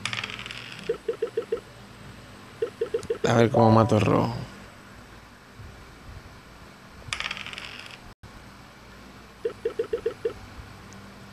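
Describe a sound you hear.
Game dice rattle in short, quick clicking bursts.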